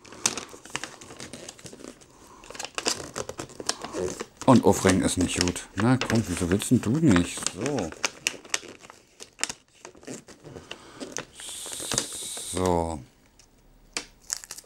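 Wrapping paper crinkles and rustles as hands tear at it.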